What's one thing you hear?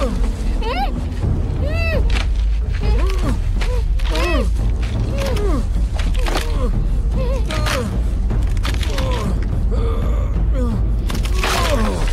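Bodies scuffle and thrash in a struggle.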